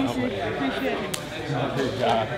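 Hands slap together in a high five.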